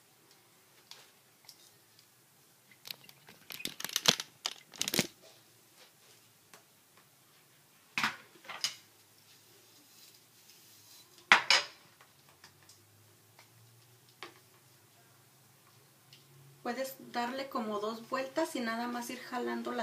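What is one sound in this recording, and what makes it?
A hair curler clicks and rattles as it is handled.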